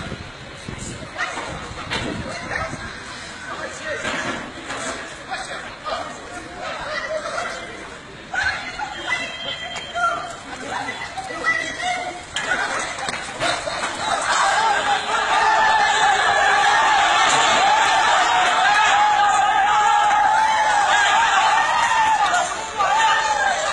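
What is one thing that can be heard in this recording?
A crowd of men shouts in the street below.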